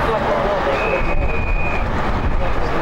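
A referee's whistle blows once, briefly and steadily.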